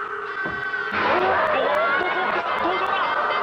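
A young boy cries out in surprise.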